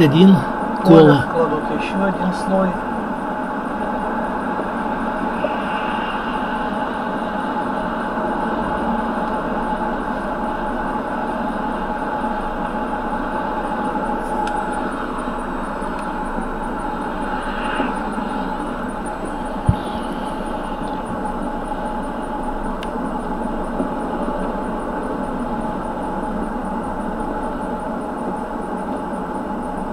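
A car engine hums steadily over tyre noise on a wet road.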